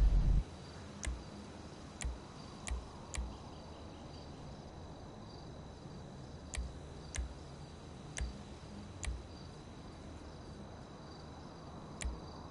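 Short game menu clicks tick now and then.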